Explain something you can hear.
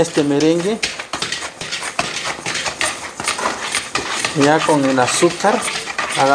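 A whisk beats thick foam in a bowl with quick, wet, tapping strokes.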